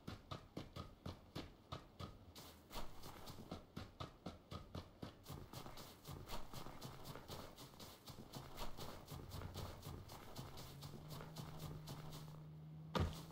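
Footsteps crunch quickly over snow and grass.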